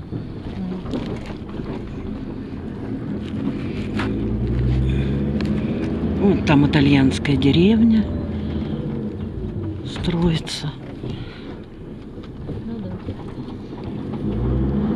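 A car engine rumbles steadily while driving slowly.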